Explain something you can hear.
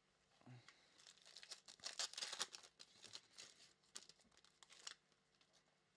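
Plastic wrapping crinkles and rustles in someone's hands.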